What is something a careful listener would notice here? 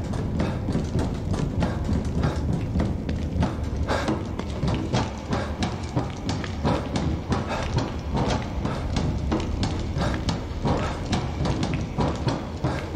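Footsteps clang on metal stairs in a steady rhythm.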